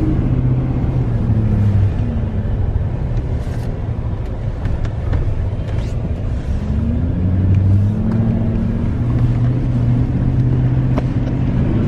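A car engine hums steadily from inside the car, rising and falling as it drives.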